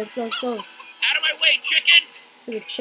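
Chickens cluck and squawk.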